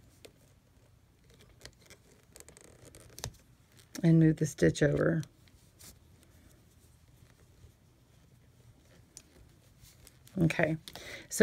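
A metal hook clicks and scrapes softly against plastic pegs.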